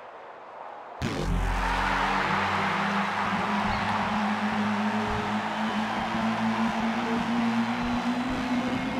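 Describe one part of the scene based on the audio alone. Loud electronic dance music plays through big loudspeakers.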